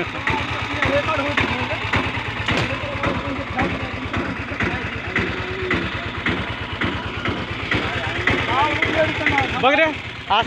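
A small engine idles close by with a fast, steady putter.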